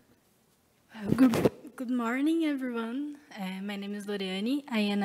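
A woman speaks into a microphone in a hall.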